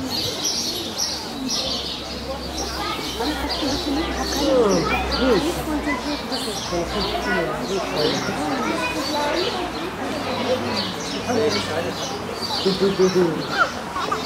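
Pigs grunt and squeal softly.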